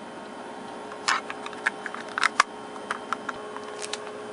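A small plastic box clicks and knocks as it is handled.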